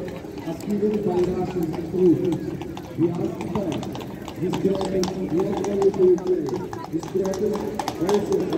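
Men and women chatter nearby in an outdoor crowd.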